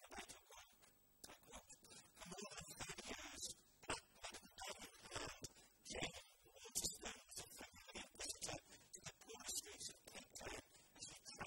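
A middle-aged man reads aloud calmly through a microphone in a room with some echo.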